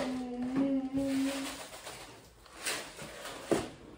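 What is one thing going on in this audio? Flakes rattle as they pour from a cardboard box.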